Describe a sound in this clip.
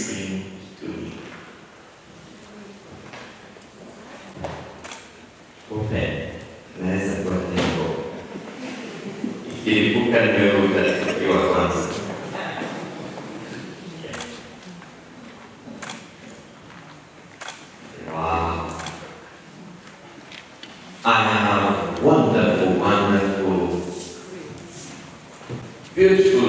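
A middle-aged man speaks calmly into a microphone, heard through loudspeakers in an echoing hall.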